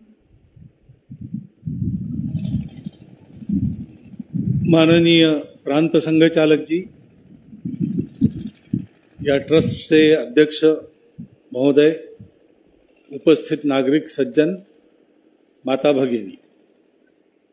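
An elderly man speaks slowly and forcefully into a microphone, heard through a loudspeaker.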